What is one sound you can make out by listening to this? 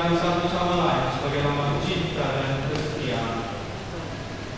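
A man speaks calmly in an echoing hall.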